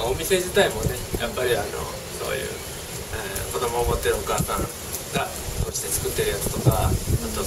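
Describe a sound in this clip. A young man speaks casually close by, outdoors in light wind.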